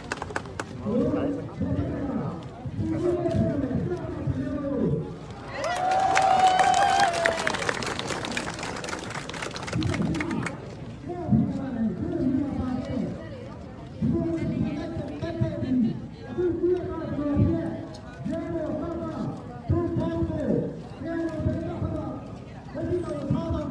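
A crowd of men chants slogans together in a steady rhythm.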